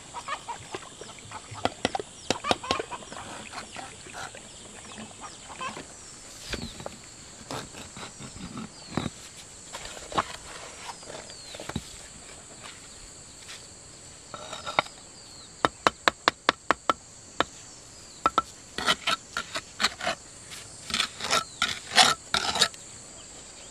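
A trowel scrapes and taps on bricks and wet mortar.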